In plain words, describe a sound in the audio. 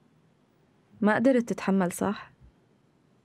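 A woman speaks softly in a quiet room.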